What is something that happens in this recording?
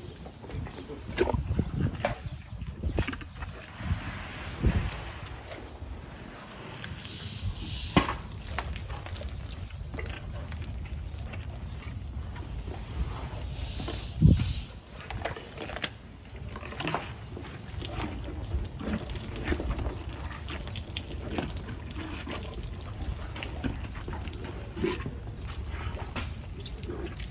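An elephant crunches and chews a watermelon up close.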